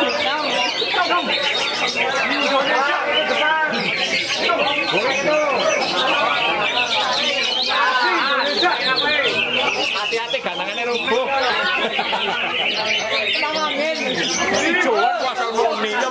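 A songbird sings a fast, busy stream of warbling chirps and whistles.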